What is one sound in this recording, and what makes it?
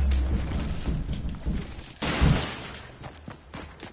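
Wooden walls clack into place with quick knocks.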